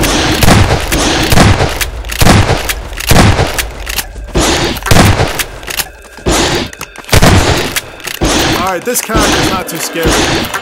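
A gun fires several shots in a row.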